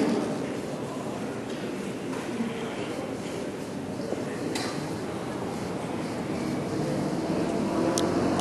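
A crowd of people murmurs quietly outdoors.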